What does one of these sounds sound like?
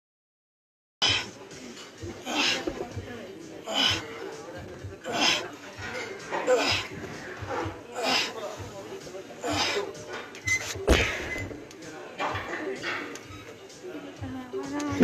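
A woman exhales sharply, in rhythm with each dumbbell lift.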